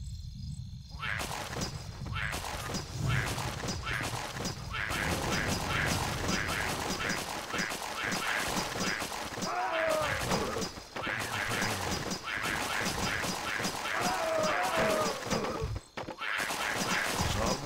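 Swords and blows clash rapidly in a busy battle.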